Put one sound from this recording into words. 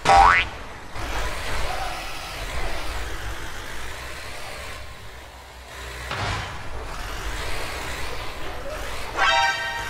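A truck thuds over bumps in the road.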